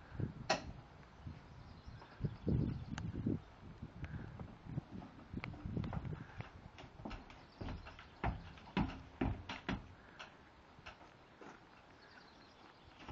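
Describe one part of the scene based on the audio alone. A horse's hooves thud and clatter on a hollow trailer floor.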